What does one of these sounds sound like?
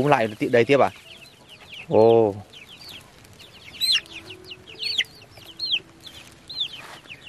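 Chicks cheep in high, rising chirps.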